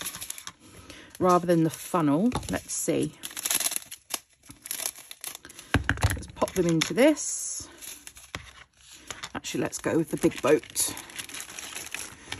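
A plastic packet crinkles as it is handled.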